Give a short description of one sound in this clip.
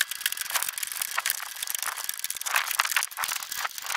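Plastic plant pots clatter and knock together as they are handled.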